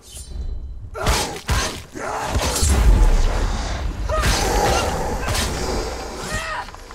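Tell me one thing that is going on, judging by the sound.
Swords clash and slash with heavy thuds.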